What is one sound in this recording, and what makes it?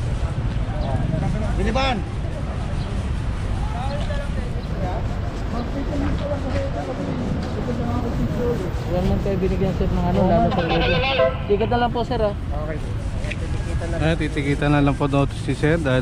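Men talk near a microphone outdoors.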